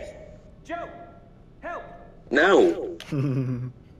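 A young man calls out urgently, shouting for help.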